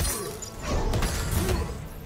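A magic blast bursts with a crackling whoosh.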